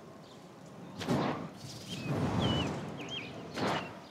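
A rushing whoosh of flight sweeps past as a glowing ring is passed.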